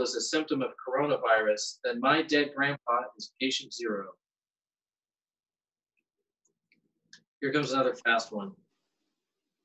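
A man reads aloud with animation, close to a microphone.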